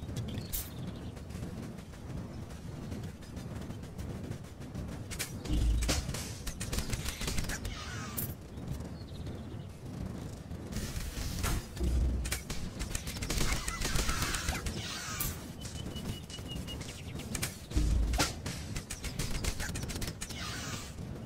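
Game combat sound effects clash and thud.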